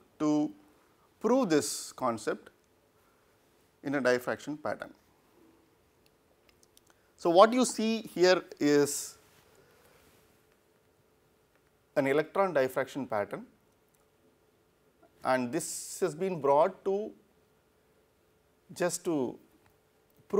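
A man speaks calmly into a close microphone, in short phrases with pauses.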